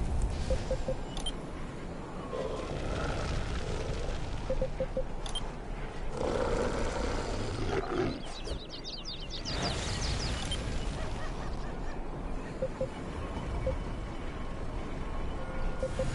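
Short soft beeps sound as a menu selection moves.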